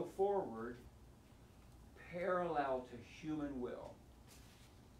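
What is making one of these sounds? An elderly man speaks calmly and clearly nearby.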